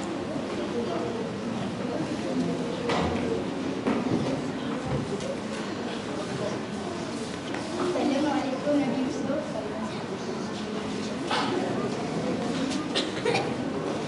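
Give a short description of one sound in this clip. Footsteps thump on a wooden stage.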